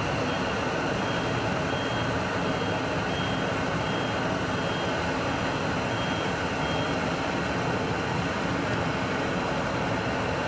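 A forklift engine rumbles steadily close by.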